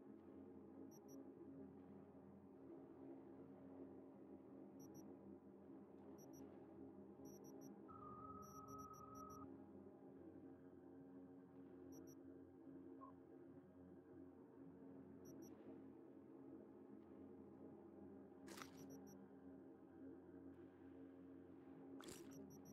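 Soft electronic menu clicks tick now and then.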